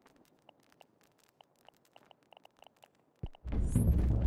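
Soft menu clicks tick quietly.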